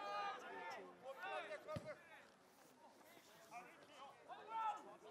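Nearby spectators, mostly men, shout and cheer loudly outdoors.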